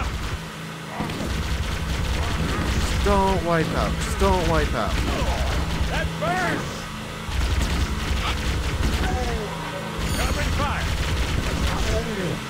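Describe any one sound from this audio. A machine gun fires in short bursts.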